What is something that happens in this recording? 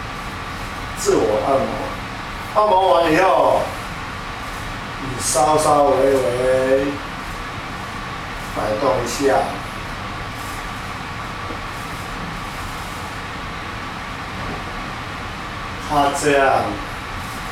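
An elderly man speaks in short, calm phrases close by.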